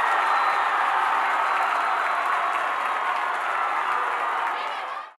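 A crowd of young women cheers and shouts loudly outdoors.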